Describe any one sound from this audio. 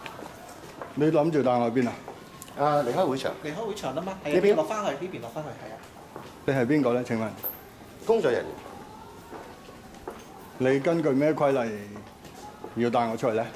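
A middle-aged man speaks close by with animation.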